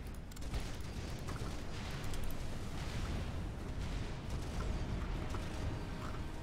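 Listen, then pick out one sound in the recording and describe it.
Video game weapons fire and explode in rapid bursts.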